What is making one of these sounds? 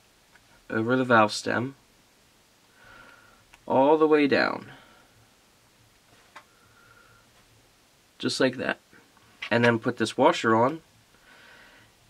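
Small metal parts click softly between fingers.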